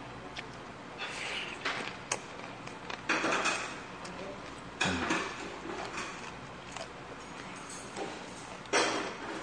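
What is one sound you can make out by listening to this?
A young man loudly slurps noodles close to a microphone.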